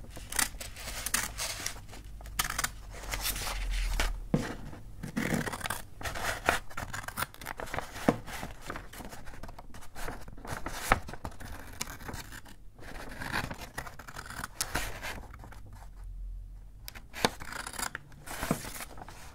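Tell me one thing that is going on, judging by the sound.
Stiff paper crinkles and rustles as hands handle it.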